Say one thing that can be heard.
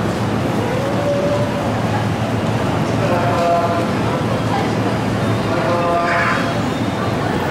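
A train's brakes squeal as it slows.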